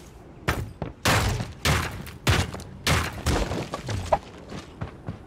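Rifle shots crack in short, rapid bursts.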